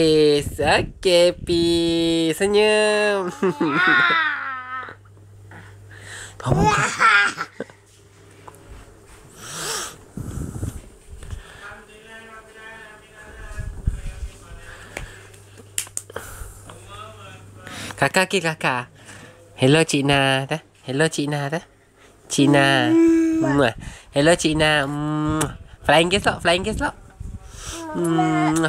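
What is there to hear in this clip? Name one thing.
A toddler babbles and squeals loudly close by.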